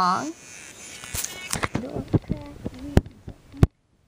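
Plastic dolls knock and rub against a metal bowl.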